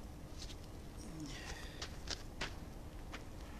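Shoes scuff and step on pavement close by.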